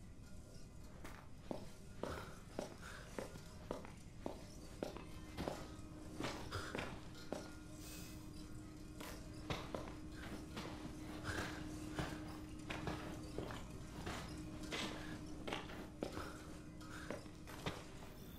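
Slow footsteps tread on a hard tiled floor.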